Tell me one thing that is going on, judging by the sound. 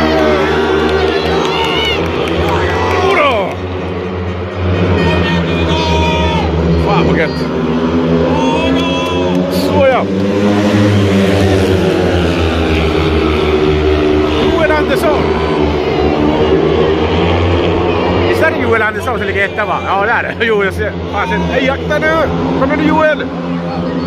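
Motorcycle engines roar and rev loudly outdoors.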